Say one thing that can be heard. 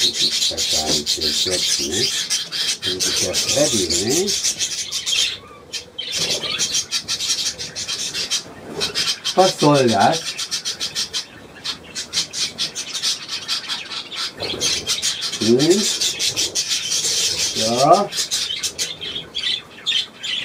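Budgerigars chirp and warble.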